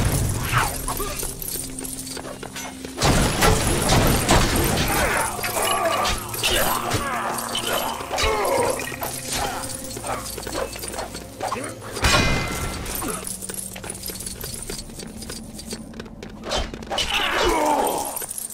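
Objects smash and break apart with bright crashes.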